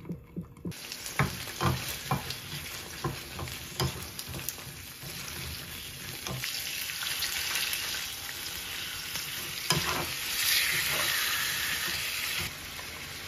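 A wooden spatula scrapes and knocks against a frying pan.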